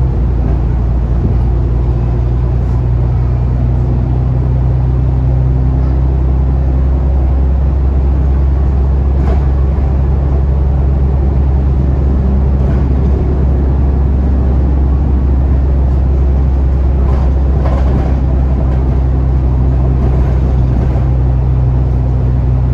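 A bus engine hums low and steady from inside the bus.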